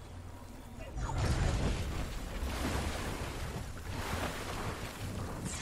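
A loud rushing whoosh sweeps past.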